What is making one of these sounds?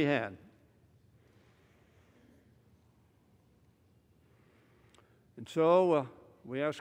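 An elderly man speaks emphatically into a microphone, with long pauses.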